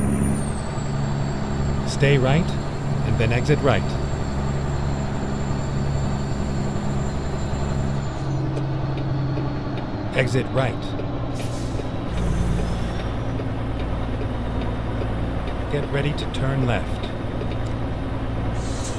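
A truck engine hums steadily, heard from inside the cab.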